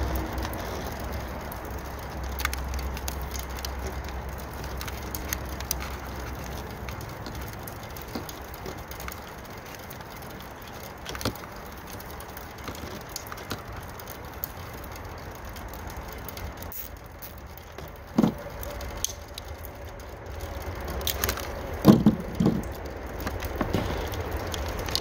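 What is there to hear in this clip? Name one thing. Thin wires rustle and tick softly as hands handle them.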